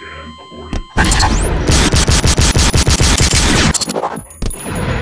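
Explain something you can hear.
A pistol fires a rapid string of shots.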